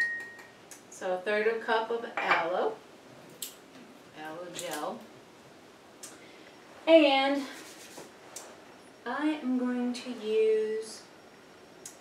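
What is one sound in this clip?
A woman talks calmly and clearly, close by.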